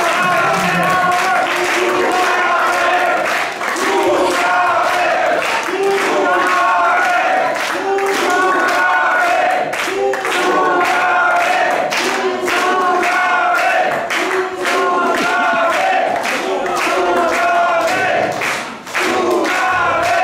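A crowd of men and women sings along loudly in a room.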